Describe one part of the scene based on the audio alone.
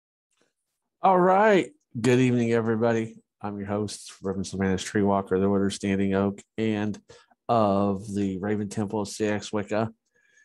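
A middle-aged man talks calmly and closely into a headset microphone.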